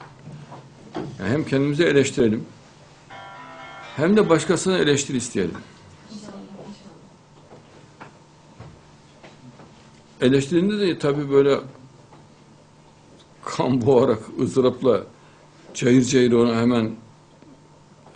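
An older man speaks calmly into a microphone in short bursts with pauses.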